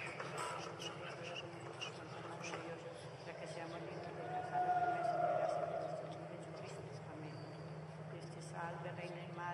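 A man speaks softly nearby.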